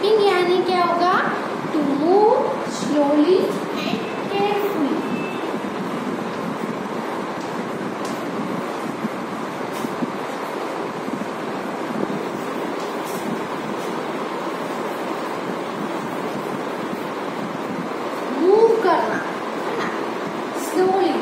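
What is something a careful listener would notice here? A young woman speaks calmly and clearly, as if teaching, close by.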